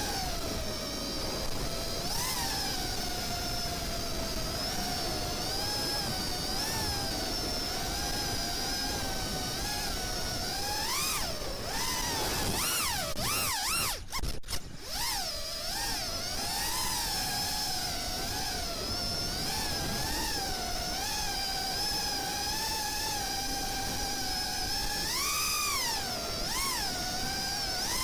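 The electric motors of an FPV racing quadcopter whine and surge with the throttle.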